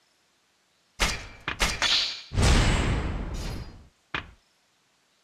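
A loud rushing chime rings out as a new ability is unlocked.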